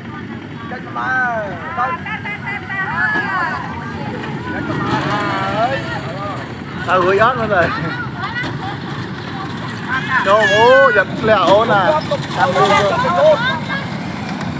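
A young child shouts and chatters excitedly nearby.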